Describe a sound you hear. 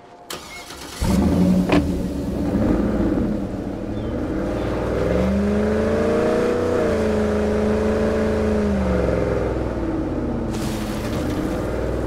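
A truck engine starts and runs, revving up and down.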